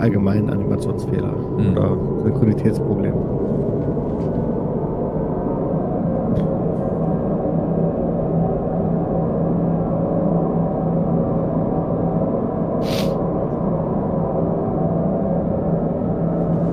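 A train hums and rumbles steadily as it rides along.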